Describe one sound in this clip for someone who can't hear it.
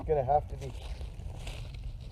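Footsteps crunch on forest ground close by.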